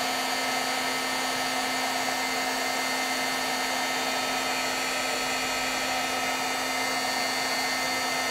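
A heat gun blows with a steady, loud whirring hum.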